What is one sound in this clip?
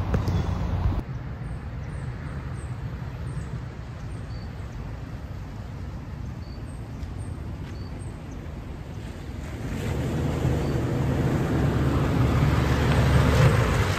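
A car engine drones as a vehicle approaches, growing louder as it nears.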